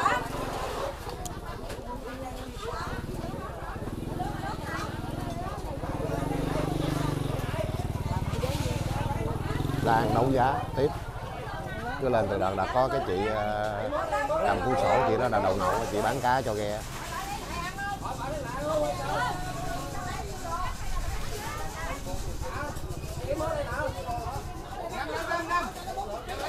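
A crowd of women chatters loudly all around.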